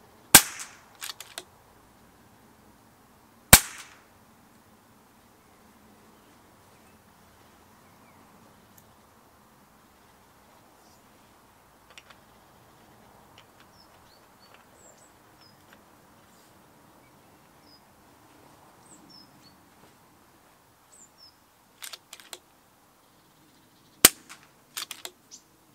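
A rifle bolt clicks and clacks as it is cycled.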